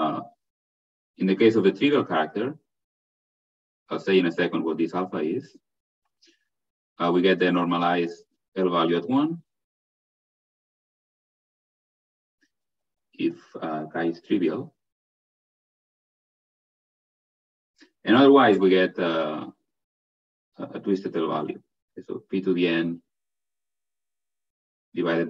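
A man lectures calmly over an online call, pausing between phrases.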